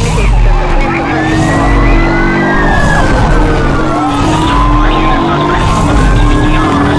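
A police siren wails and rises and falls.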